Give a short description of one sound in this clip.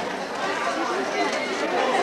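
A crowd of people chatters and murmurs nearby.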